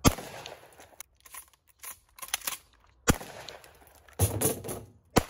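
Shells are loaded into a shotgun with metallic clicks.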